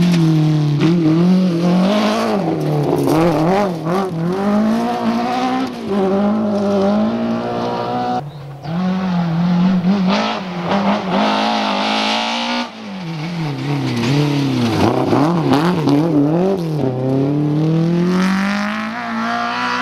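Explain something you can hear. Gravel sprays and crunches under fast tyres.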